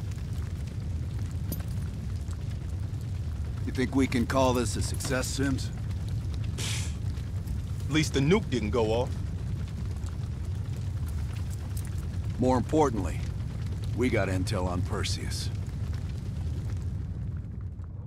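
A fire roars steadily in the background.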